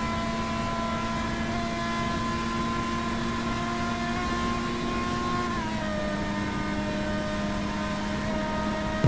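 A racing car engine whines at high speed, steady with a slight drop in pitch as it shifts.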